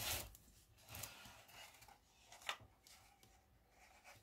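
A wooden shelf knocks and scrapes as it is lifted.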